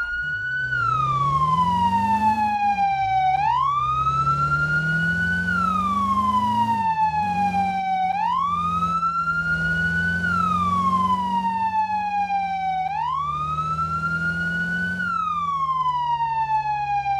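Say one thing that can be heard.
A fire engine's engine rumbles as it drives.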